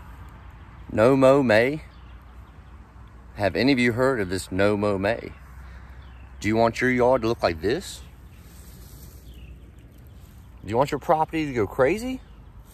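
A man talks close to a microphone, calmly and in short bursts, outdoors.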